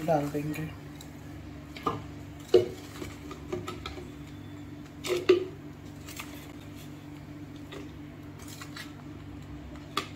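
A metal spoon scrapes and clinks against a metal bowl.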